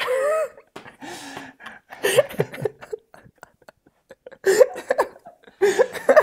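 A boy laughs.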